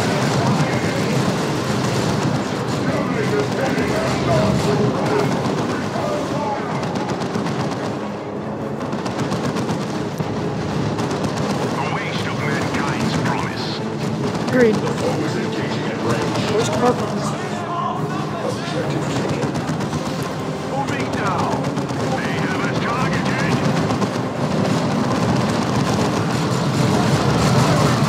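Gunfire and explosions crackle in a battle.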